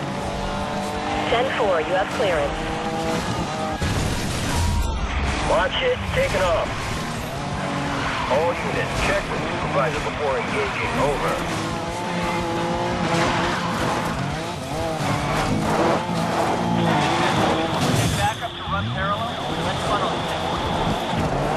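A sports car engine revs hard at high speed.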